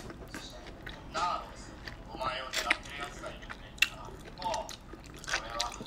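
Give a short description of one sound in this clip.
A woman bites into soft juicy fruit and chews with wet smacking sounds, close up.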